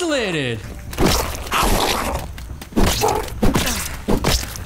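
A spear strikes a giant beetle with heavy thuds.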